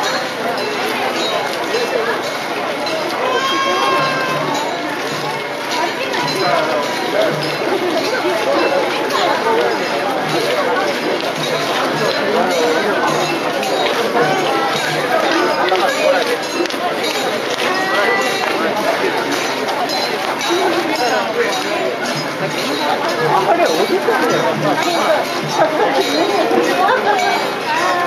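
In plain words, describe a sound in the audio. Many footsteps shuffle on pavement as a procession passes.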